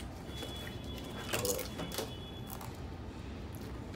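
A woman crunches a potato chip.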